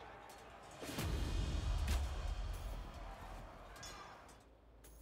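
A triumphant fanfare swells.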